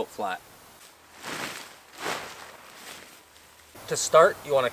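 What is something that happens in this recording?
A tarp rustles and flaps as it is spread out.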